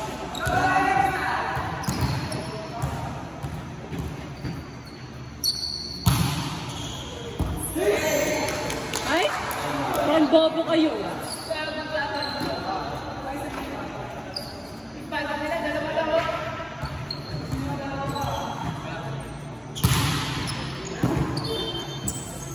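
Young men talk and call out across an echoing hall.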